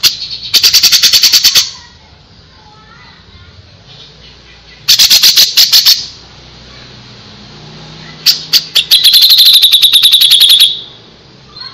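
A songbird sings in rapid, sharp bursts of loud chirps.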